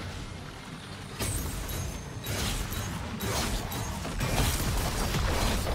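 Weapons clash and strike with sharp hits.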